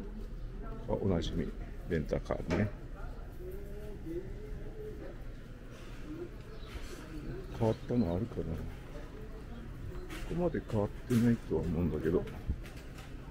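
Adults chat nearby in passing.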